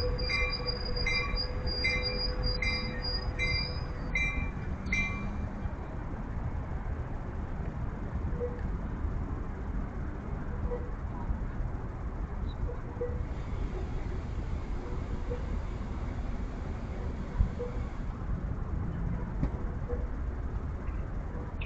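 A train rumbles in the distance.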